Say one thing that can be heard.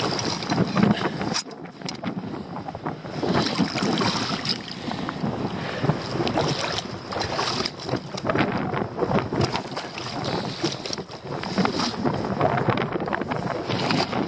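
Boots splash and slosh through shallow water.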